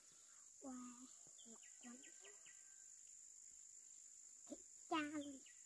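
A young girl speaks softly nearby.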